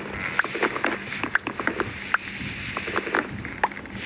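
Wooden blocks crack and break with quick knocks.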